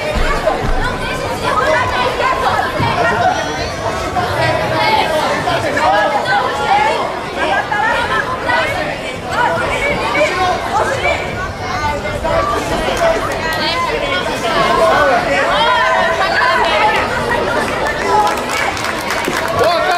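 A crowd chatters and shouts throughout a large echoing hall.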